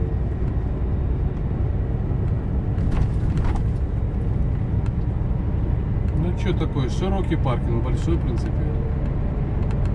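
Tyres hum on the road surface.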